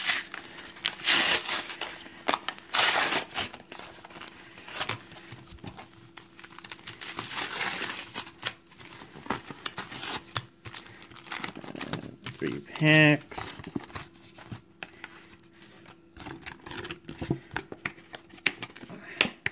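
Paper wrappers crinkle and rustle in someone's hands.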